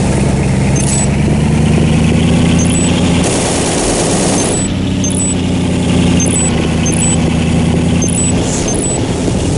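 A vehicle engine rumbles steadily, then cuts off.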